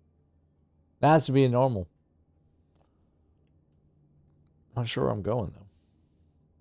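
A man speaks in short bursts, close through a headset microphone.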